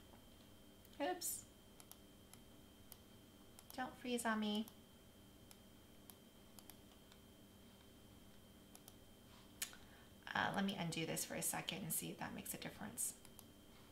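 A woman speaks calmly and closely into a microphone, in short bursts.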